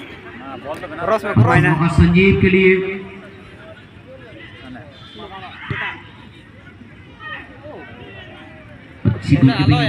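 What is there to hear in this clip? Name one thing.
A crowd of spectators shouts and cheers outdoors, loudly in bursts.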